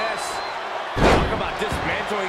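A body thuds onto a wrestling ring mat.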